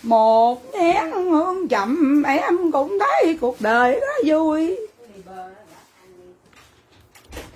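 A woman talks loudly and animatedly close by.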